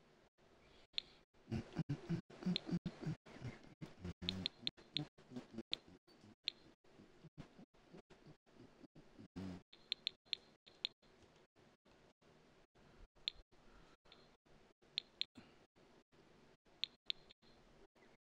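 Short soft clicks sound from a game menu.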